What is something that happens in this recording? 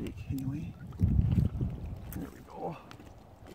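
Water sloshes and splashes around a person wading.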